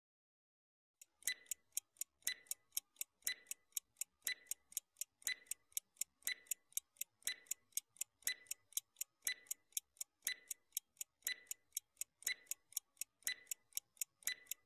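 A stopwatch ticks steadily, with a sharp click about once a second.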